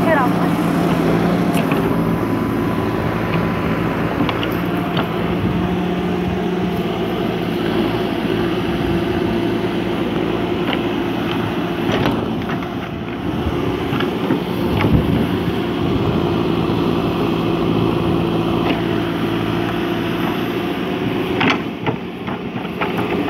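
A diesel engine of a backhoe rumbles steadily close by.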